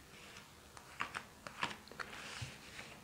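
Playing cards slap and flick against each other.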